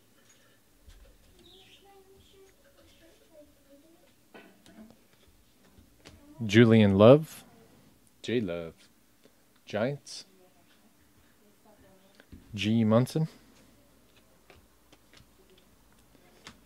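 Trading cards rustle and flick as a hand shuffles through them.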